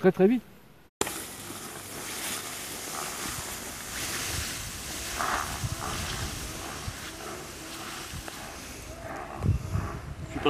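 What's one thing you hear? Tall grass rustles and swishes as a person wades through it.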